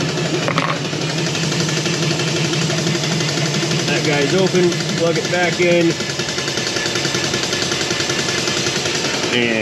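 A pump hums steadily through a hose.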